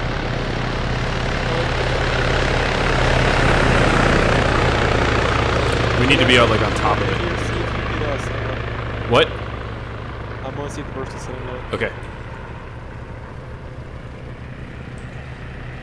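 A helicopter drones overhead with a steady thudding hum.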